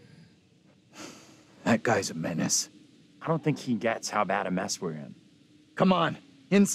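A middle-aged man speaks calmly and quietly, close by.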